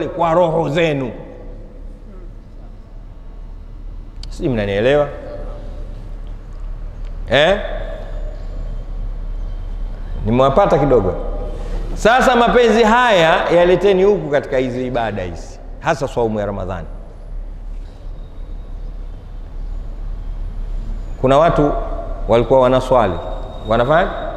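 A man speaks with animation through a microphone, with long pauses.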